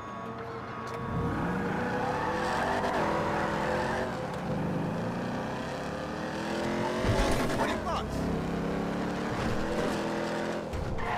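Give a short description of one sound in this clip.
A car engine revs and roars as the car drives off.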